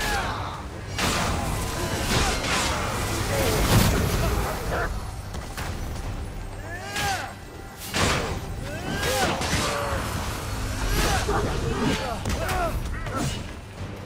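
Swords clash and slash in quick, repeated strikes.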